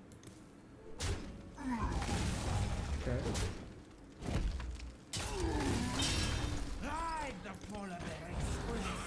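Game sound effects crash and whoosh.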